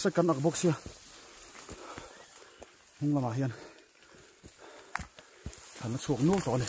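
A young man talks close by in bursts, a little out of breath.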